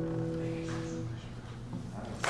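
A guitar chord rings out and fades.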